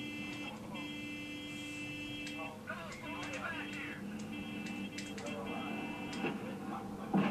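A warning alarm beeps repeatedly.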